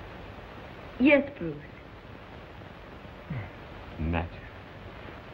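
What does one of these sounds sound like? A young woman answers quietly and tenderly, close by.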